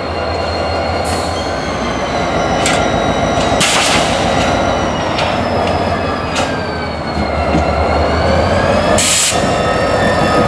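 Steel wheels clank and squeal on the rails.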